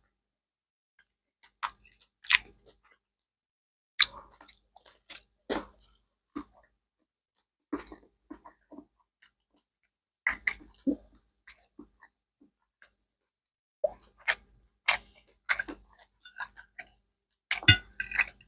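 A man chews food with loud smacking sounds close to a microphone.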